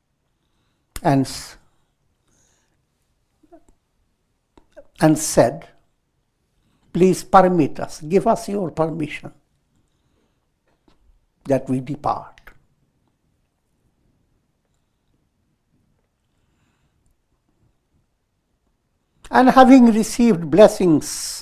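An elderly man reads aloud calmly through a clip-on microphone, in short phrases with pauses.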